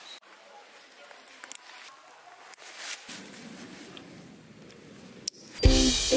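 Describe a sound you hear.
A plastic buckle clicks shut.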